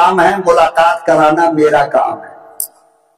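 An elderly man speaks with animation into a microphone, his voice echoing through a loudspeaker.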